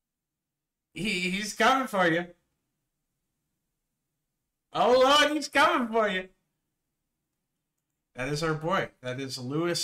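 A man speaks with exaggerated intensity in short bursts.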